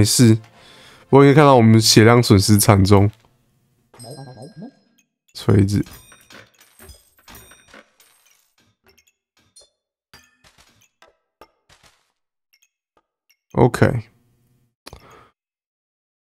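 A young man speaks with animation into a microphone, close by.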